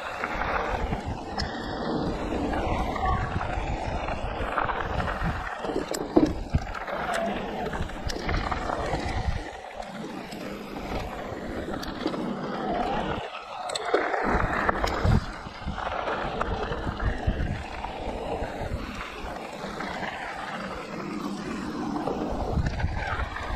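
A bike's frame and chain rattle over bumps.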